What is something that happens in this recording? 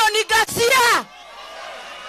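A woman speaks loudly and forcefully through a microphone outdoors.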